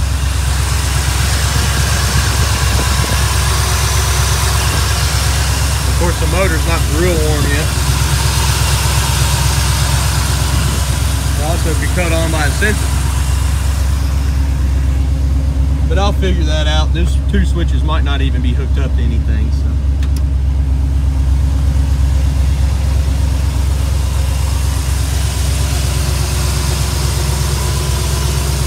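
A car engine idles with a deep, steady rumble.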